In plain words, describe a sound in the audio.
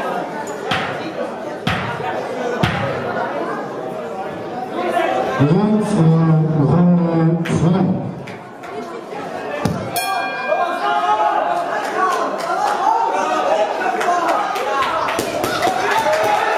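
A crowd of men and women chatters throughout a large echoing hall.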